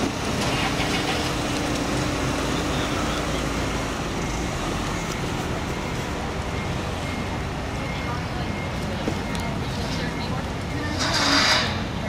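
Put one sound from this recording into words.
A small car pulls away and drives off across asphalt.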